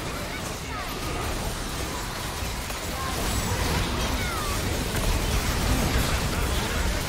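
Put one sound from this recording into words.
Game spell effects crackle and whoosh in a fight.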